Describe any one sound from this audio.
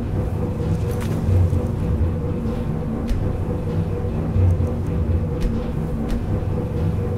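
Soft clicks sound as menu options are selected.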